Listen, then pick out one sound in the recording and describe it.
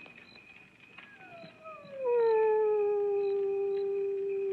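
A man plays a harmonica, a long note that bends down and holds.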